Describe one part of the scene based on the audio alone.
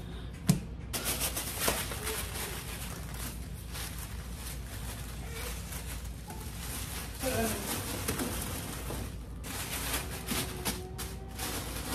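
Tissue paper crinkles and rustles loudly.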